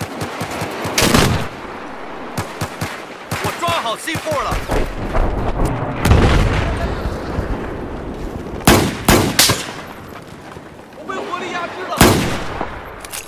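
Gunshots crack sharply several times.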